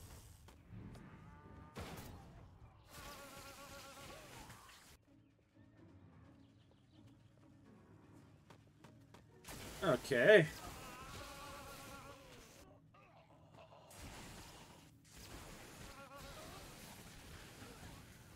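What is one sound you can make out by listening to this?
Electric zaps crackle in short bursts.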